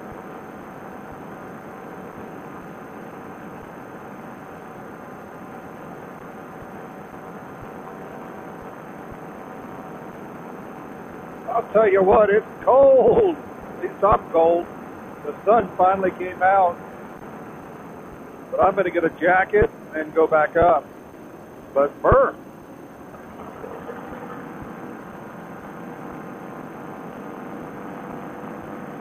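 An engine drones steadily close by.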